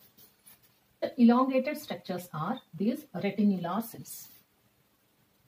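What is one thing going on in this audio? A woman speaks calmly and clearly into a microphone.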